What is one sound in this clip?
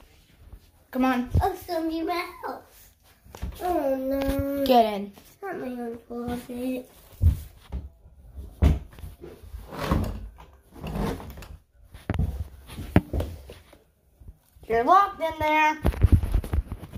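A young boy talks with animation, close to the microphone.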